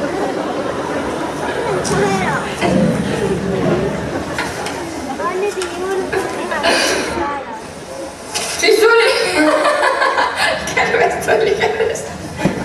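A young man laughs loudly into a microphone.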